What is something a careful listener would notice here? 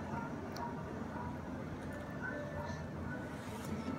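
A baby smacks its lips while chewing.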